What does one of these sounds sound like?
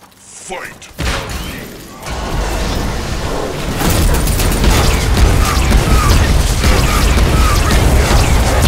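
Magic blasts and sword clashes crackle and boom in a fierce fight.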